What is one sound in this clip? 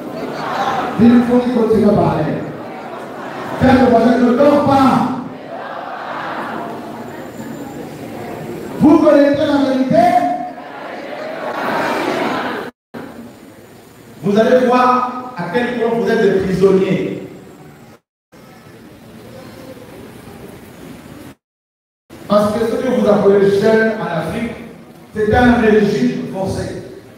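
A crowd of men and women sings loudly together in a large echoing hall.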